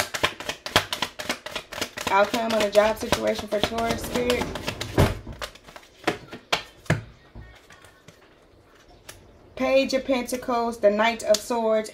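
Cards shuffle and flick against each other close by.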